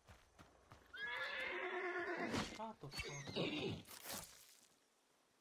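A horse whinnies close by.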